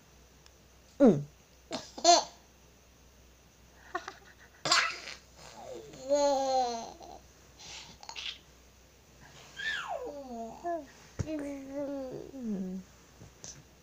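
A toddler giggles and laughs up close.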